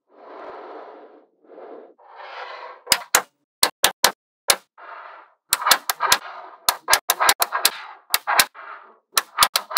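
Small metal balls rattle and roll against each other.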